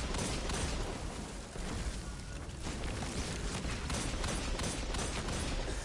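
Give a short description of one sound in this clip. Explosions burst with a deep rumble.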